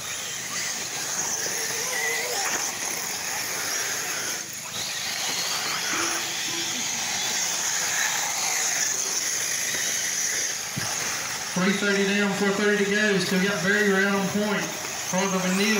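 A small electric motor whines as a remote-control car races over dirt.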